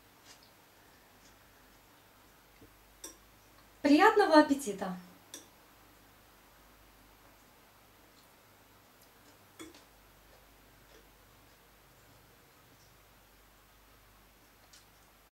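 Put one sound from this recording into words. A fork clinks lightly against a plate now and then.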